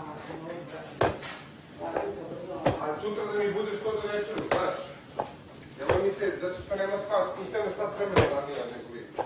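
A ball slaps into hands as it is caught.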